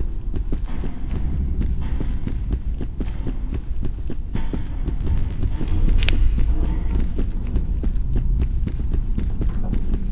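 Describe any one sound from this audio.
Footsteps thud on a hard floor at a quick pace.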